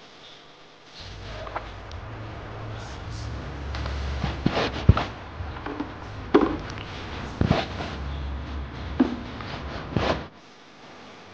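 Water splashes onto wet ground again and again.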